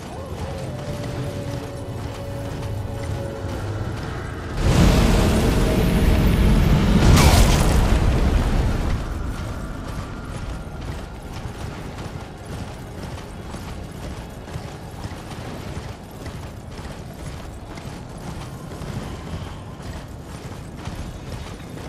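A horse gallops with rapid hoofbeats on snow.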